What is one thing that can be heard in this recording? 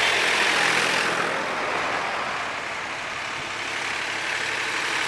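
Tractor engines chug as the tractors drive closer along a road.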